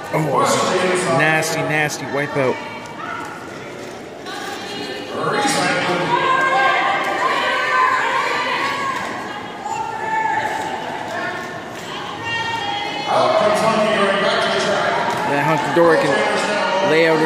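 Women call out and talk in a large echoing hall.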